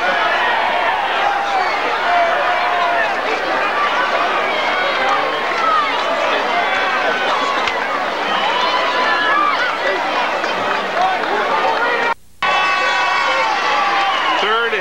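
A crowd of people chatter and shout outdoors.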